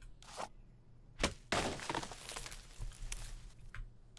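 An axe chops into a tree trunk.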